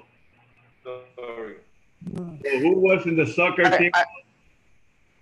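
A middle-aged man talks with animation over an online call.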